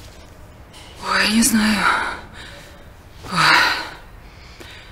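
A woman speaks quietly and breathlessly.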